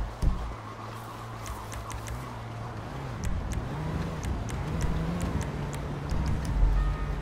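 Menu clicks tick in quick succession.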